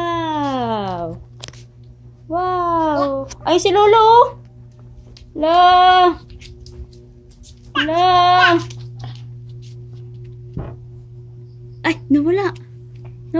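A toddler babbles and squeals in short high bursts close by.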